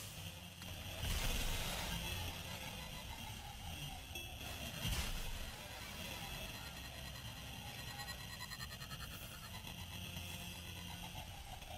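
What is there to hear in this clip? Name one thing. A hover vehicle engine hums and whines as it speeds along.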